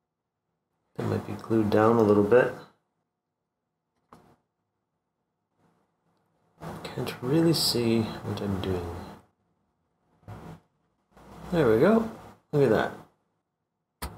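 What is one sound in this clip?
A middle-aged man talks calmly into a microphone.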